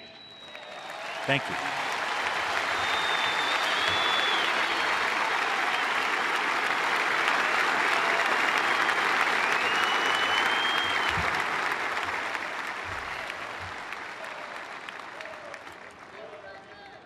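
A large crowd applauds loudly.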